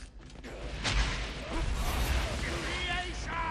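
A loud explosion roars and crackles.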